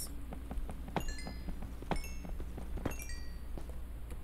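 A block is struck and breaks with short dry knocks.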